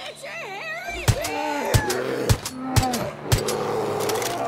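A pistol fires several sharp shots in quick succession.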